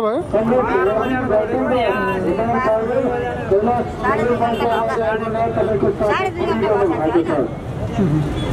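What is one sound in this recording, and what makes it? An elderly woman speaks in an upset, wavering voice close by.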